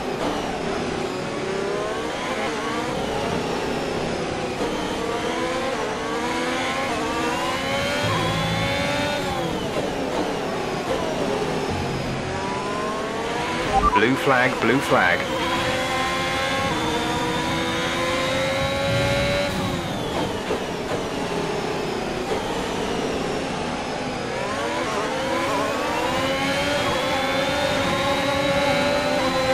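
A racing car engine screams, rising and falling in pitch as it shifts gears and brakes.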